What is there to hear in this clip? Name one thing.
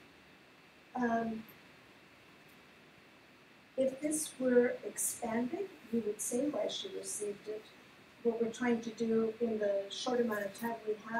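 A woman speaks into a microphone, heard through loudspeakers in a large room.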